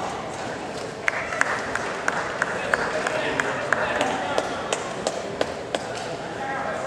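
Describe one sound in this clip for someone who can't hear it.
Spectators clap briefly.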